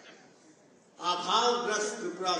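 An elderly man speaks calmly into a microphone, his voice carried by loudspeakers.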